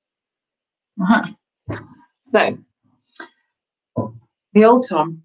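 A woman speaks calmly and close, heard through a microphone.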